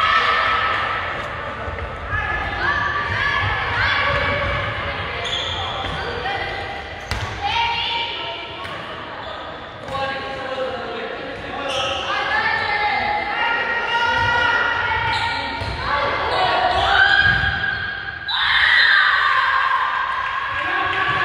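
A handball bounces on a wooden floor.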